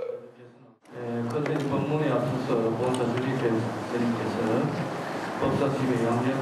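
A crowd of men and women chant together in unison.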